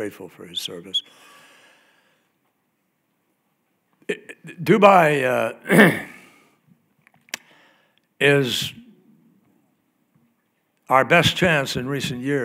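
An elderly man speaks slowly and deliberately into a microphone, with long pauses, in a large echoing hall.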